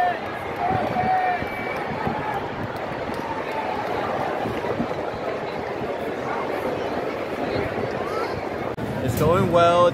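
A large stadium crowd murmurs in a steady roar.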